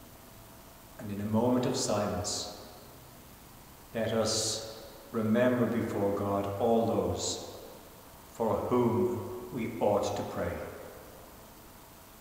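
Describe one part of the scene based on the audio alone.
An elderly man speaks slowly and solemnly.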